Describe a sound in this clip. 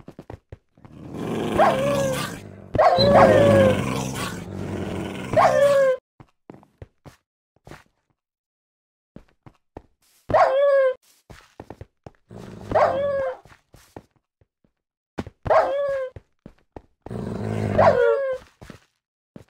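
A fiery creature lets out a rasping, falling cry as it dies.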